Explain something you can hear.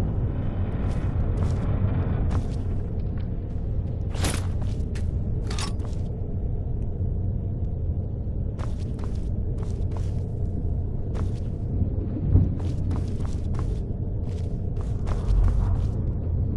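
Footsteps tap slowly on a stone floor.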